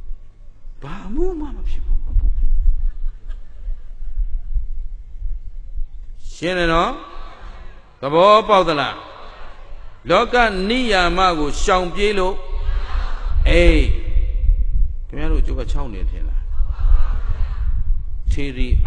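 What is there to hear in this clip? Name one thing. A middle-aged man speaks calmly into a microphone, heard through a loudspeaker in an echoing room.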